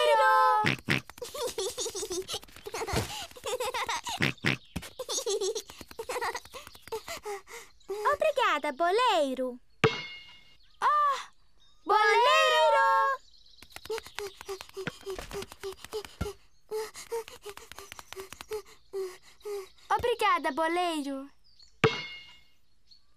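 Young children talk with animation.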